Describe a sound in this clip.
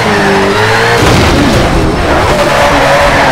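A car crashes with a loud thud.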